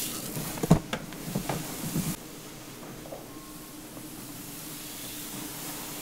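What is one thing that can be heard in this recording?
Hands rub and massage a scalp.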